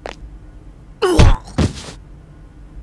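A heavy blow strikes with a sharp thud.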